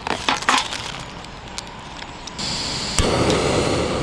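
A metal pot clinks as it is set on a camping stove.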